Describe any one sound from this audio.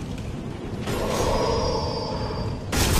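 A magic spell hums and shimmers.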